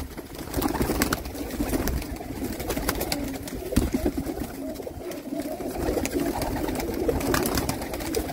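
Pigeons flap their wings.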